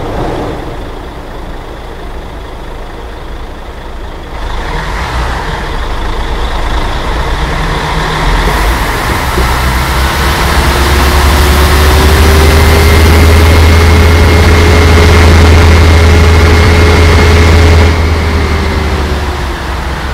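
A heavy bus engine rumbles and grows steadily louder.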